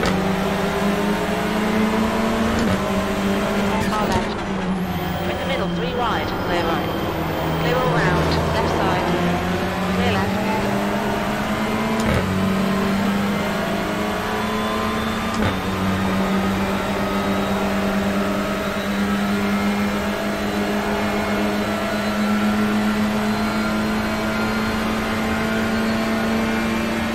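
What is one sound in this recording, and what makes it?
A racing car engine roars steadily, shifting gears up and down.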